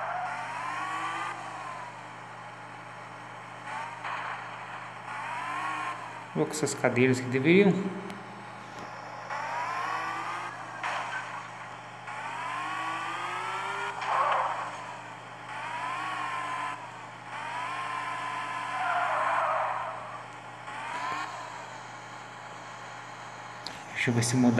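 A sports car engine revs up and down again and again.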